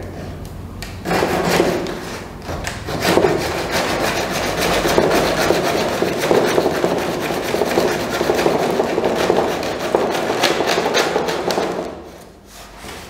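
A hacksaw cuts through plastic with quick rasping strokes.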